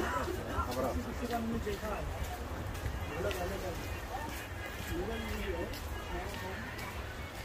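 Footsteps tap on a hard path.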